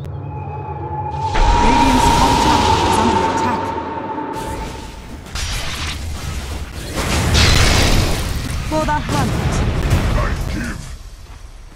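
Magical spell effects whoosh and crackle during a fight.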